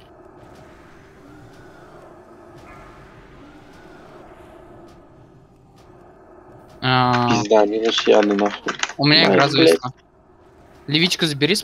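Magic spells hum and crackle faintly in a battle.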